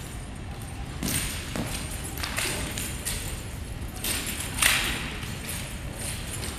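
A staff swishes through the air in quick swings.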